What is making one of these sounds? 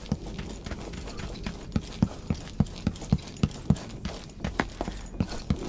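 Quick footsteps thud on a wooden floor indoors.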